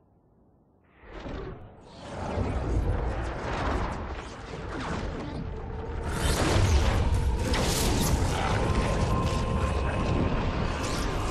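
A portal whooshes open and roars steadily, growing louder.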